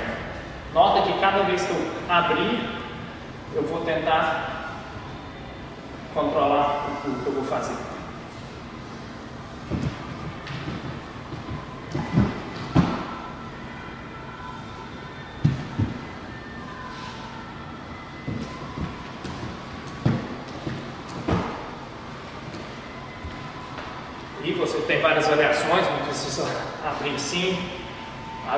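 A young man speaks to the listener with animation in a large echoing hall.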